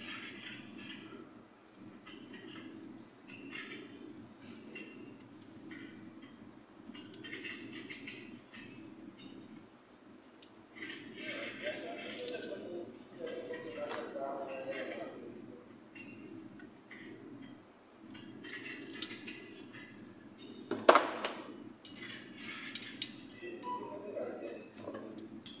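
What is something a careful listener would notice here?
Metal parts scrape and clink close by.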